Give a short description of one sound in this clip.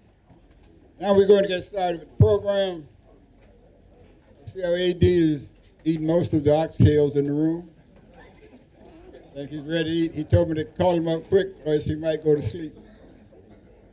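An elderly man speaks into a microphone over a loudspeaker, calmly and with pauses.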